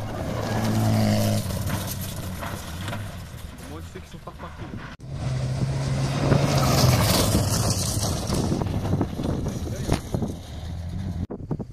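Tyres crunch and spray over gravel.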